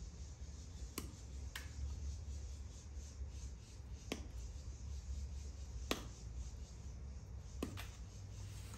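A crimping tool snaps shut on a wire connector with sharp clicks.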